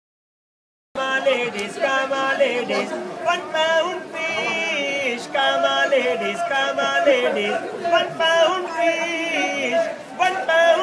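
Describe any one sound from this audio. A man sings loudly close by.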